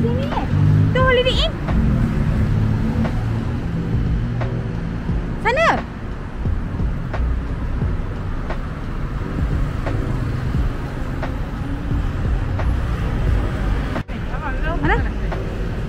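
Cars drive past on a city street with a low, steady rumble of traffic.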